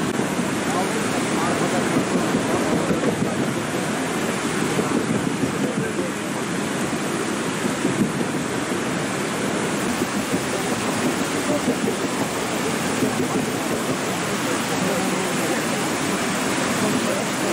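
A swollen river rushes and roars loudly over rocks.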